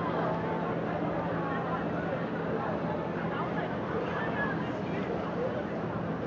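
A car engine hums as a car rolls slowly past.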